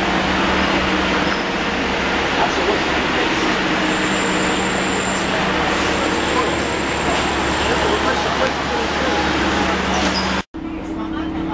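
A bus engine idles loudly nearby with a steady rumble.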